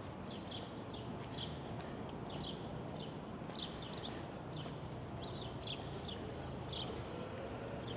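A bicycle rolls past on pavement.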